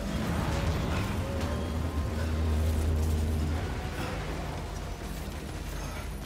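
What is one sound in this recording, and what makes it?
Strong wind blows and rumbles with a deep roar.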